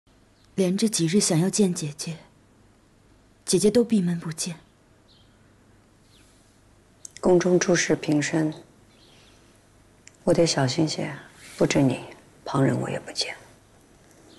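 A young woman speaks calmly and softly nearby.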